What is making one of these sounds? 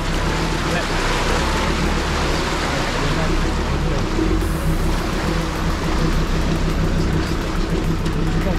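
Tyres splash through water and roll over wet gravel.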